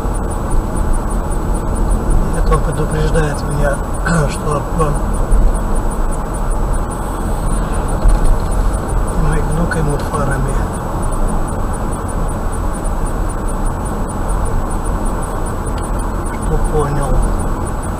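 A car's engine and tyres rumble steadily on a road.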